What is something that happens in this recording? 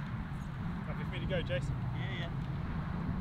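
A man speaks casually at a distance.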